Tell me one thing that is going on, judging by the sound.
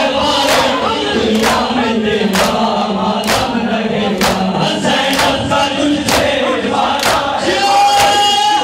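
A man chants loudly into a microphone.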